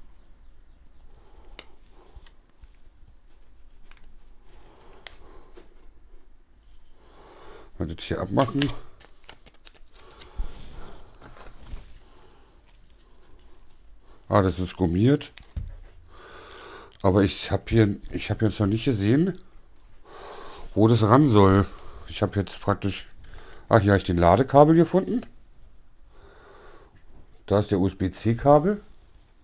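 Plastic parts click and rattle as a small device is handled.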